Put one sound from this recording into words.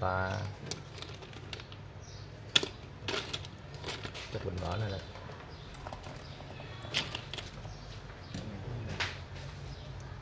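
Small plastic tools click and clatter as they are picked up.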